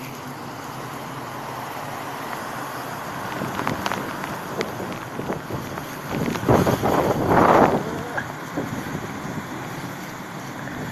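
Strong wind roars and gusts through trees outdoors.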